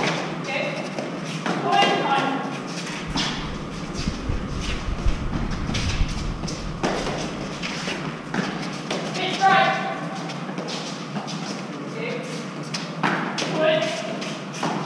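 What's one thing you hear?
Young women call out in an echoing court.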